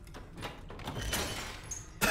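A metal push bar clunks as a heavy door swings open.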